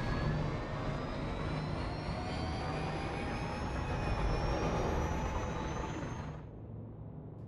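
A spaceship's engines roar with a slowly rising whine.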